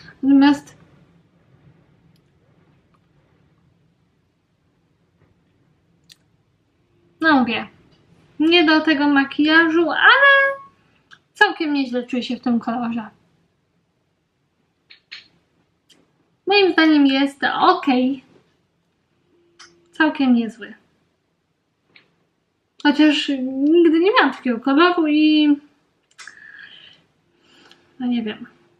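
A young woman talks calmly and close up, in short bursts with pauses.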